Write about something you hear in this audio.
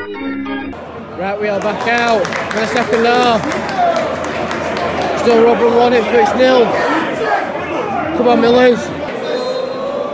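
A large crowd of fans chants and sings together in an echoing stadium.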